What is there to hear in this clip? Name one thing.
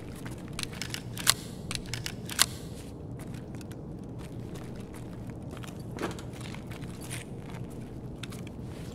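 Footsteps crunch over loose rubble.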